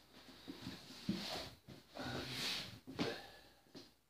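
A sneaker thuds softly onto a cardboard box.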